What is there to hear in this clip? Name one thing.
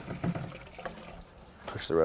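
Liquid splashes as it is poured into a bucket.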